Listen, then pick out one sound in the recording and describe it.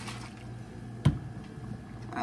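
A glass bottle knocks down onto a hard counter.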